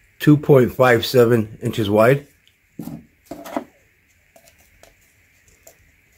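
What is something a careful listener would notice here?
A hand brushes and knocks lightly on a wooden tabletop.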